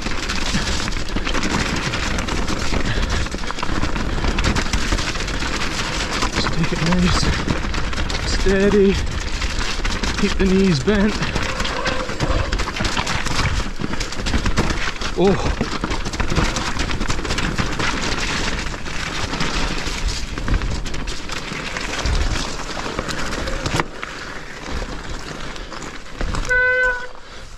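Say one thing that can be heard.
Bicycle tyres rattle and crunch over rocks and loose stones.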